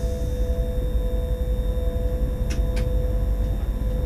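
An oncoming train rushes past close by.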